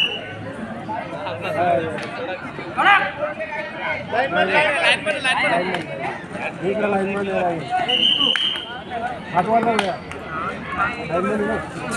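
A crowd of spectators chatters and shouts nearby outdoors.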